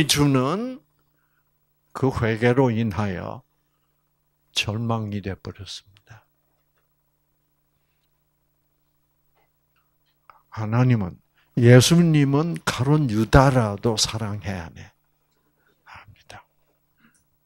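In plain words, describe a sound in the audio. An elderly man speaks into a microphone in bursts, with pauses between phrases.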